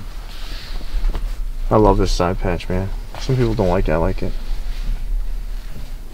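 Cardboard and caps rustle as they are handled.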